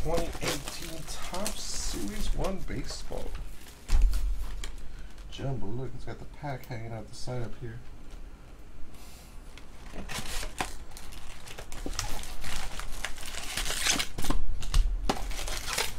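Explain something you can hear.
Plastic wrap crinkles.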